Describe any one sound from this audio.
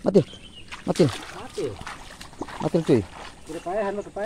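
Feet splash through shallow muddy water.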